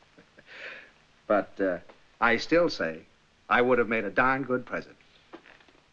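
An older man laughs heartily.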